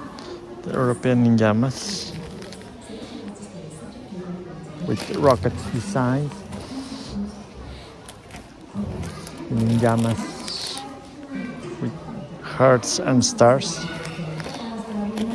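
A plastic package crinkles as it is handled.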